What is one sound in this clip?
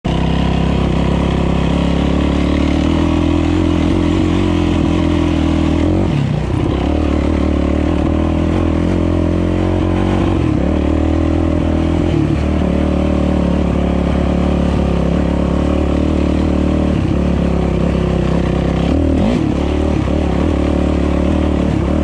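Tyres rumble over a rough dirt trail.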